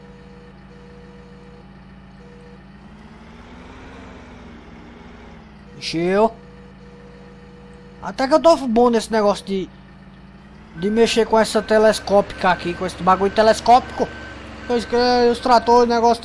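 A loader's diesel engine hums steadily, rising briefly as it works.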